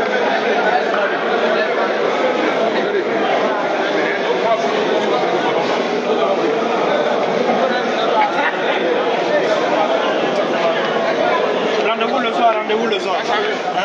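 A crowd of men chatters loudly and excitedly close by.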